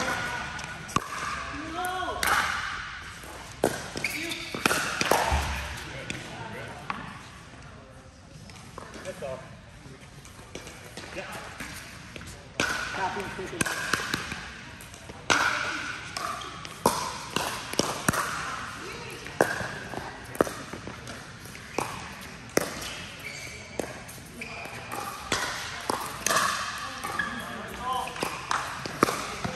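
Young men and women call out and talk during play.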